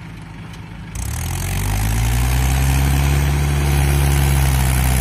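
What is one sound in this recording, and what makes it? A tractor engine revs up loudly.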